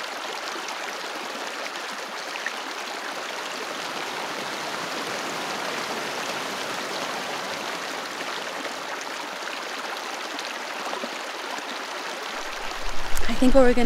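A shallow stream trickles and babbles steadily.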